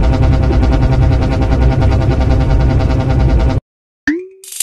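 Loud, pulsing game music plays and then cuts off abruptly.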